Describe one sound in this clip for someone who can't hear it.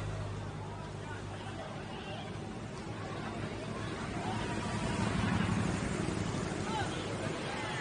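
Motorcycle engines hum as they pass along the road.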